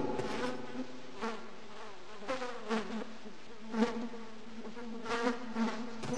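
A metal gate creaks as it swings slowly.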